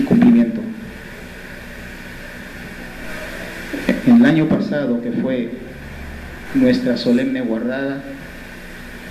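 A man speaks slowly and formally through a microphone and loudspeakers in an echoing hall.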